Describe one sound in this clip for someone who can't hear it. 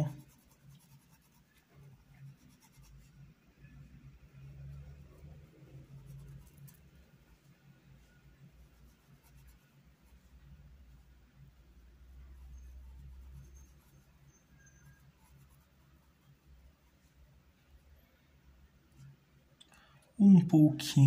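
A brush softly strokes paint onto fabric.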